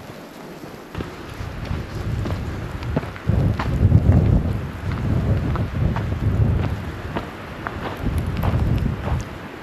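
Wind gusts outdoors in falling snow.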